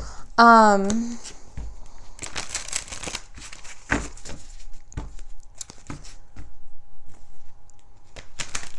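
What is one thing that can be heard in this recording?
Playing cards are shuffled and riffled with soft rapid clicks.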